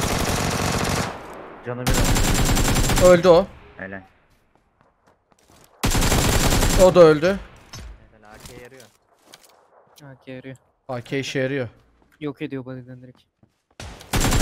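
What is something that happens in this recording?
Rapid gunfire bursts from an assault rifle.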